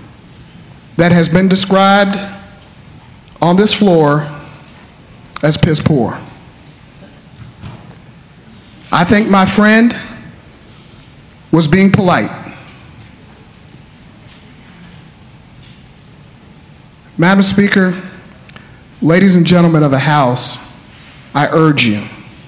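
A man speaks into a microphone in short bursts with pauses.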